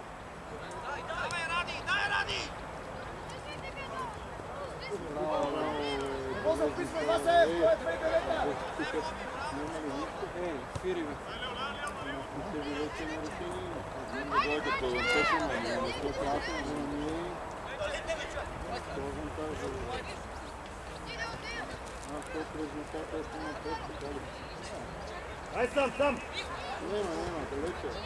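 Young men shout to one another outdoors across an open field.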